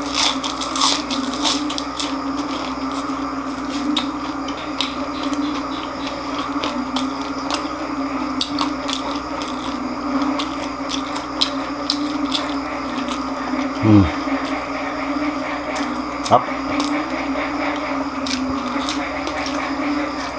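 A man chews crunchy fried food loudly and close by.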